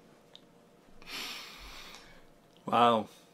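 An elderly man laughs softly.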